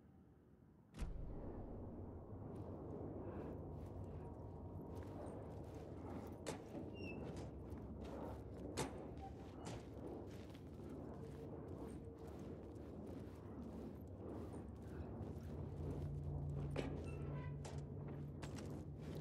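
A low rumble echoes through a large tunnel.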